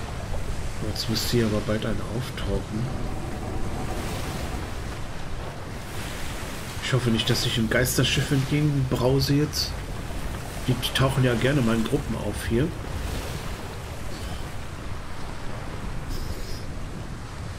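Rough waves churn and splash around a sailing boat.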